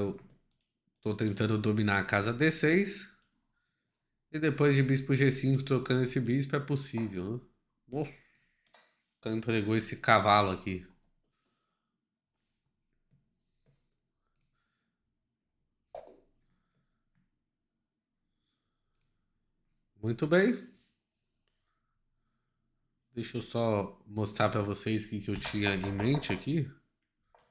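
A man talks calmly and with animation into a close microphone, pausing now and then.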